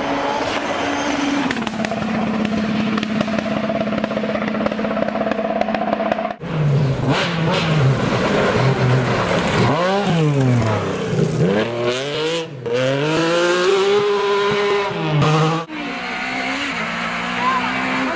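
A rally car engine roars steadily as the car speeds closer.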